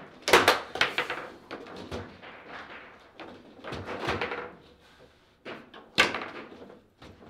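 Foosball rods clack and spin as players strike the ball.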